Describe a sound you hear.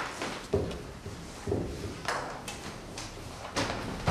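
Papers rustle and slide on a table.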